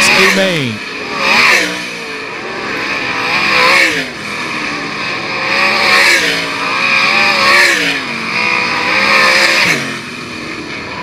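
Race car engines roar past one after another, rising and falling in pitch.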